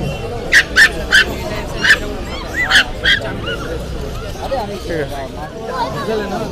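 Adults talk in the background in a busy crowd.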